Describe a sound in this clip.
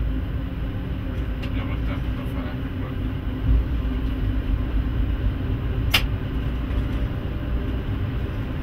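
Rain patters on the windscreen.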